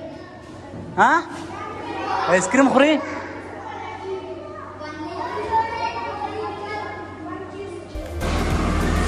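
A young girl makes small vocal sounds close by.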